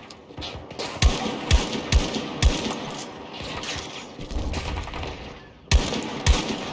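Rifle shots crack loudly, one after another, with an echoing boom.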